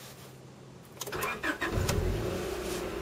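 A car engine cranks and starts up.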